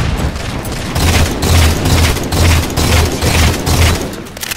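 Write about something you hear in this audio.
A rifle fires in quick repeated shots.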